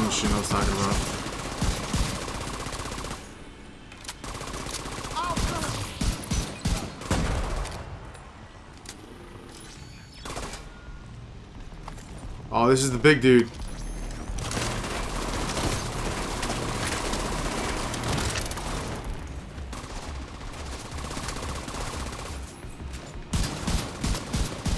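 Guns fire in rapid bursts of shots.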